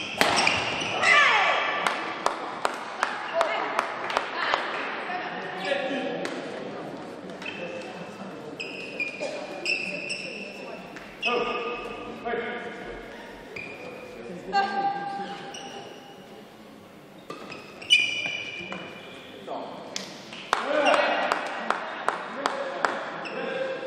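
Rackets strike a shuttlecock in quick, sharp smacks in a large echoing hall.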